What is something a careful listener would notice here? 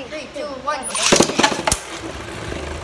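Spinning tops are launched into a plastic arena with a whirring rattle.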